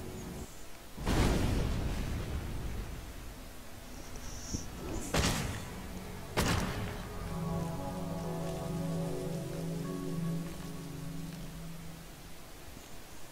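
A stone bridge crashes down with a deep, booming rumble.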